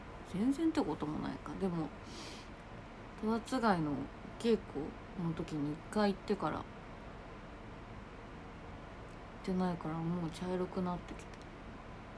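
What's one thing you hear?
A young woman speaks softly and haltingly, close to the microphone.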